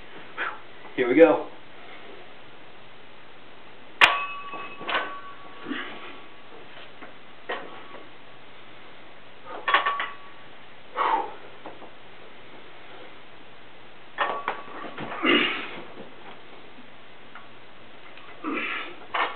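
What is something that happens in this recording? A man grunts and breathes hard with effort.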